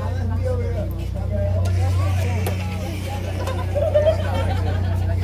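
A crowd of people chatters and calls out nearby outdoors.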